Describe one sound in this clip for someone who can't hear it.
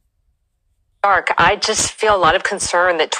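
A woman speaks calmly through a small loudspeaker.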